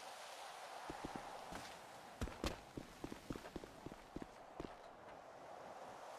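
Footsteps thud on hard ground.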